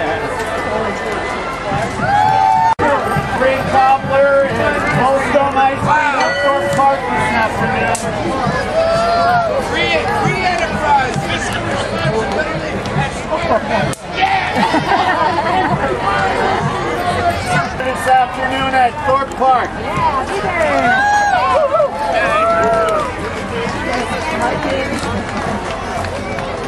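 A large crowd outdoors cheers and shouts.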